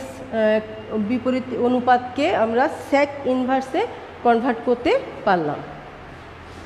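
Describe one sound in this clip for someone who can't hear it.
A woman speaks calmly and clearly nearby, as if explaining.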